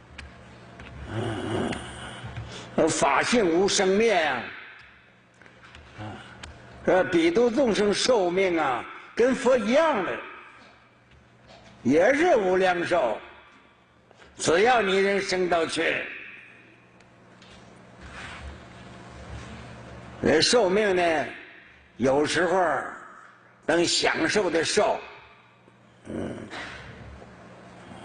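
An elderly man speaks calmly and slowly into a microphone, in short phrases with pauses.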